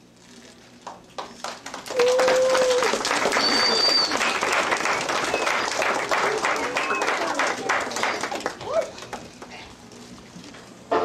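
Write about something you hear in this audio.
An audience claps loudly in an echoing room.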